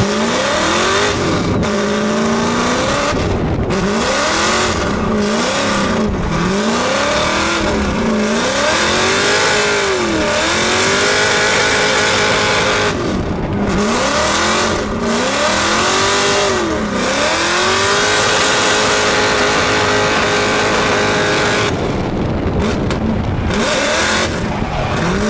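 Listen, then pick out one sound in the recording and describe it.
A race car engine roars close by, revving up and down sharply.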